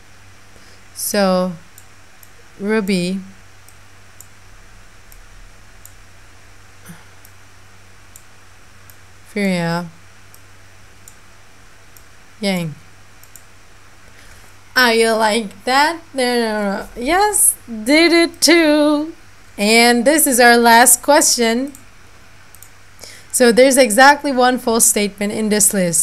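A young woman talks close to a microphone, pausing between short remarks and then speaking with animation.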